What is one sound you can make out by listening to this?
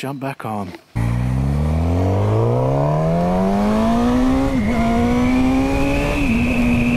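A motorcycle engine revs up steadily as it accelerates, with brief dips at each gear change.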